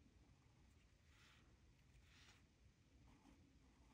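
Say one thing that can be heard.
A fine-tip pen scratches across paper.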